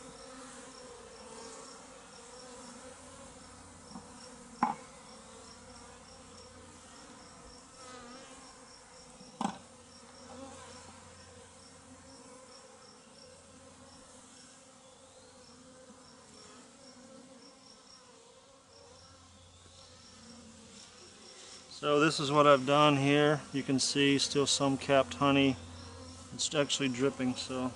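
Bees buzz softly around a hive.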